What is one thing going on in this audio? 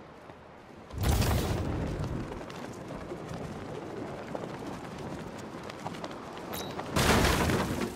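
Wind rushes loudly past during a fast glide.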